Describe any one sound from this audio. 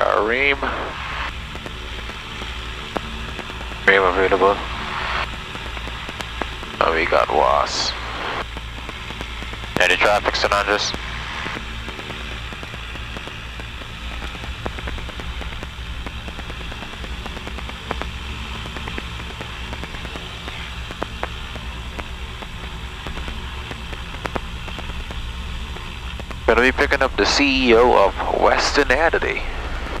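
A man speaks calmly over a headset radio in short bursts.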